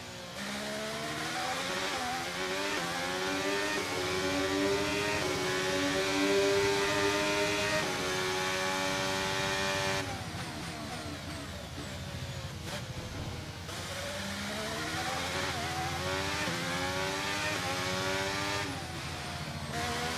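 A racing car engine screams at high revs, rising through the gears and dropping as it brakes.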